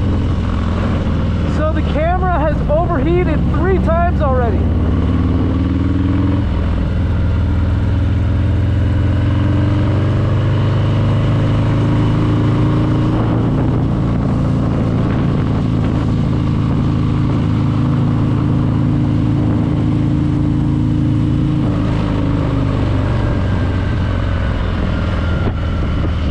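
A motorcycle engine rumbles steadily and shifts pitch as the rider rides along.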